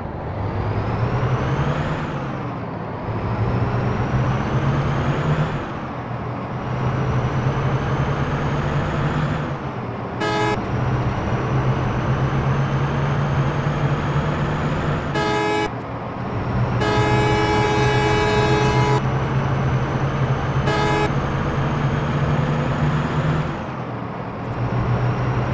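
A bus engine drones steadily, its whine rising through the gears and dropping at each gear change.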